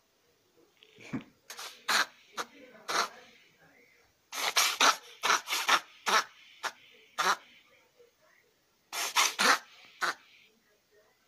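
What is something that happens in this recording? A cat meows loudly up close.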